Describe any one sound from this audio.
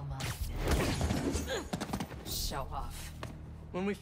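Punches land with heavy thuds in a fight.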